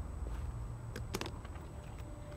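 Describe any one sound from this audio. A case clicks open.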